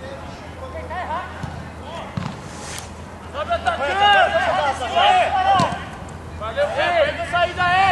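Young men shout loudly outdoors.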